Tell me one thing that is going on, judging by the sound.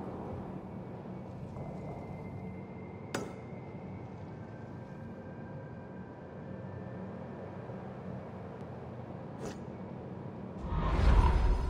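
Wind blows steadily.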